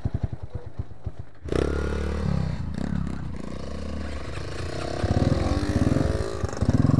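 Dirt bike tyres crunch over a rough dirt trail.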